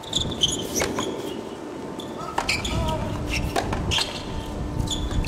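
Tennis shoes squeak on a hard court.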